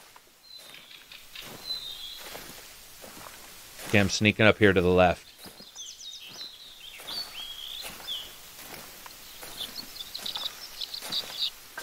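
Leaves rustle as someone pushes through dense bushes.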